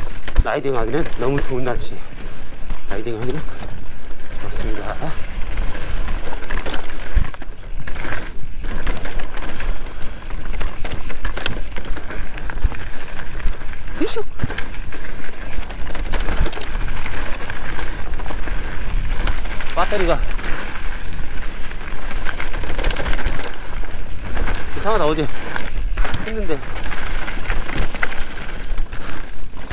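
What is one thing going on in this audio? Bike parts rattle and clank over bumps.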